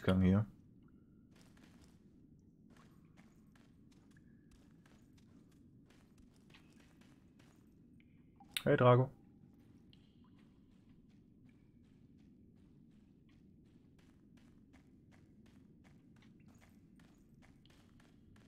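Footsteps crunch softly on rocky ground.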